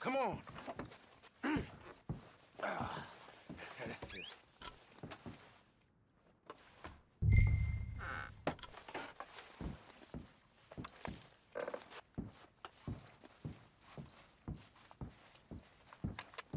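A man's footsteps thud.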